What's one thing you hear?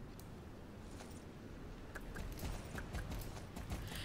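Hooves clop slowly on soft ground.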